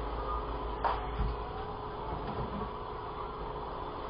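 A refrigerator door opens with a soft pull.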